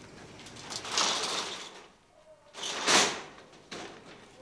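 Wooden doors bang shut with a loud rattle.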